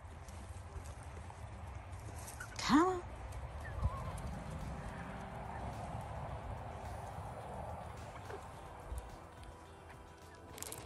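Chickens' feet scratch and rustle in dry leaves.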